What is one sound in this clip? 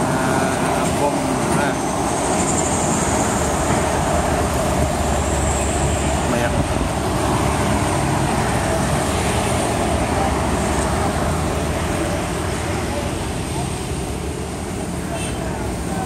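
Traffic rumbles steadily along a nearby road outdoors.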